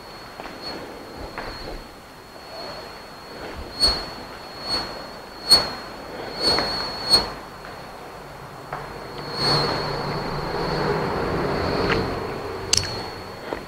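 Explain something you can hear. A man speaks calmly through a headset microphone, as if teaching.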